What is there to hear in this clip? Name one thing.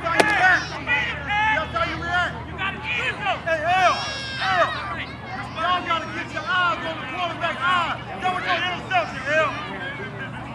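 Spectators cheer and shout loudly nearby.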